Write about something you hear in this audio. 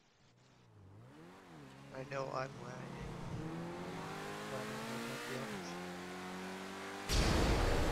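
A sports car engine revs and roars as the car speeds along a road.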